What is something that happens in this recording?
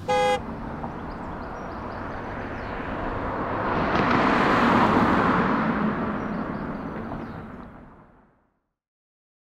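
A car drives past on a road, rising and fading.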